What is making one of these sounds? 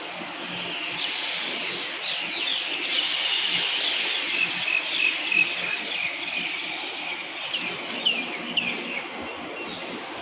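Train brakes squeal as the train comes to a stop.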